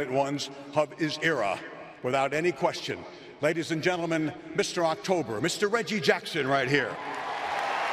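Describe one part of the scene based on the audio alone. An older man speaks with animation through a microphone in a large echoing space.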